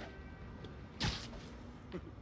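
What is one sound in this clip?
A body lands on a rooftop with a dull thud.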